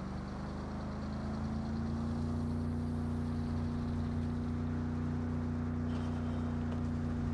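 A car engine roars steadily as the car speeds along a road.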